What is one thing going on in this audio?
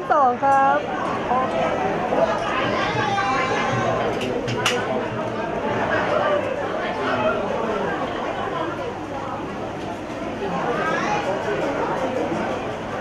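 A crowd of men and women chatters softly nearby.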